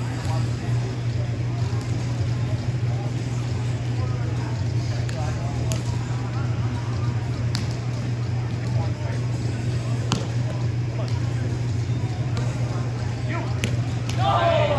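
A ball bounces off a small net with sharp snaps.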